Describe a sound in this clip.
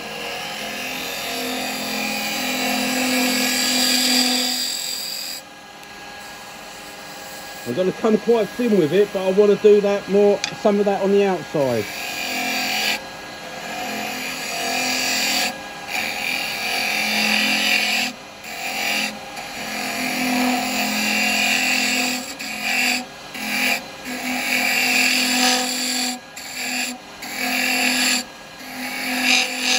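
A lathe hums steadily as it spins.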